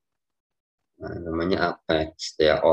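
A young man speaks calmly through a microphone on an online call.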